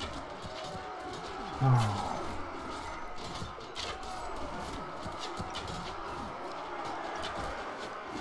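A bowstring twangs as arrows are shot.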